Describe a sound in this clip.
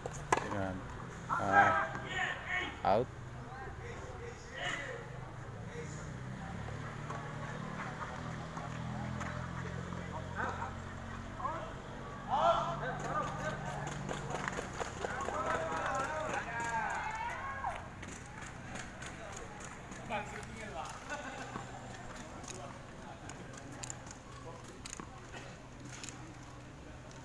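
Tennis rackets strike a ball with sharp pops outdoors.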